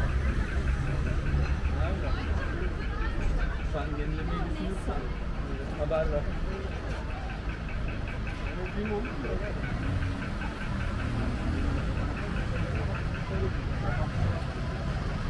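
Traffic and street noise hum steadily outdoors.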